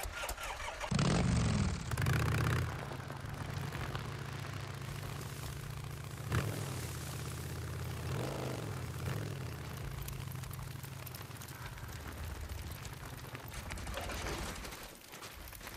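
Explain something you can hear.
A motorcycle engine rumbles steadily as the bike rides along.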